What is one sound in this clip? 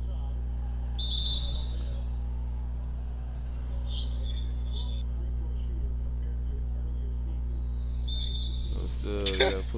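Sneakers squeak on a basketball court.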